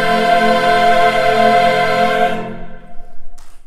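A large choir sings a held final chord in an echoing hall.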